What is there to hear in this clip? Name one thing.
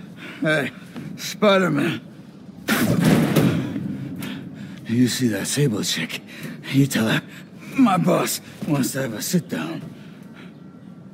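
A man speaks gruffly and casually, close by.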